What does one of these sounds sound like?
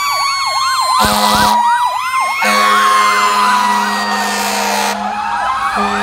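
A fire truck air horn blasts loudly.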